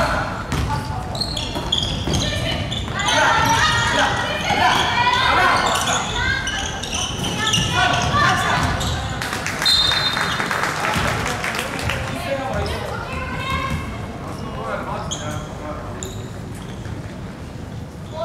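Young women shout and call out in a large echoing hall.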